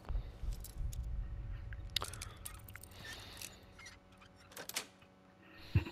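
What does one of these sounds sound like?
Metal lock picks scrape and click inside a lock.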